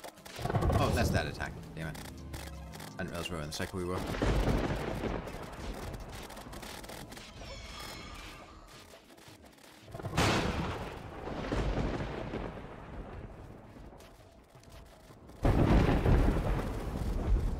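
Magic blasts and explosions rumble and crackle loudly.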